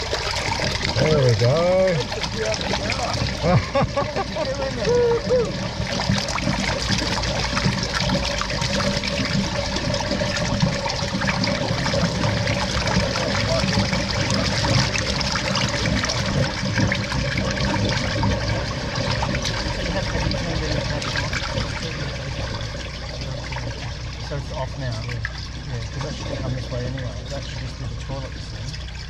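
Water gushes from a broken pipe and splashes into a pool.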